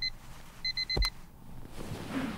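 A hand slaps down on an alarm clock.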